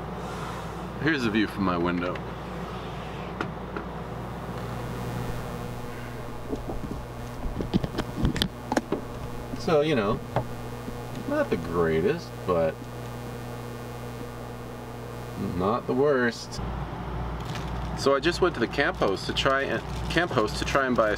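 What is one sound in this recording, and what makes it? A young man talks casually, close to the microphone.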